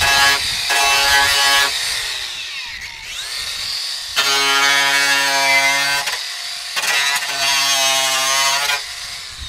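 An angle grinder whines loudly in bursts as it cuts metal.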